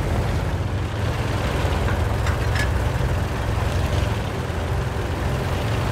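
Tank tracks clank over cobblestones.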